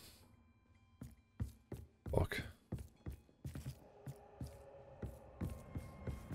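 Footsteps tread on a wooden floor.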